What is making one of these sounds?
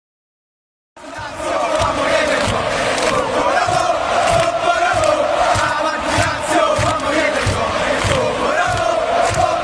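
A crowd claps in rhythm.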